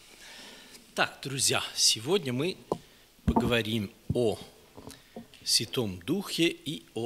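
A man speaks with animation into a microphone in an echoing hall.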